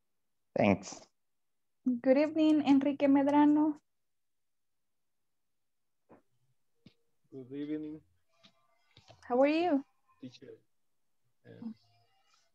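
A woman speaks in short bursts with animation over an online call.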